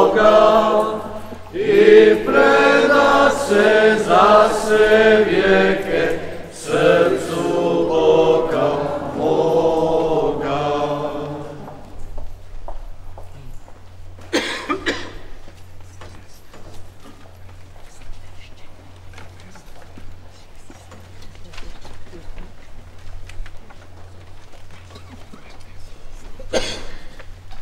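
Footsteps shuffle on a hard floor as people walk.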